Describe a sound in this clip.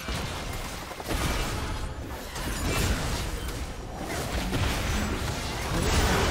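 Spell effects and weapon hits clash in a video game battle.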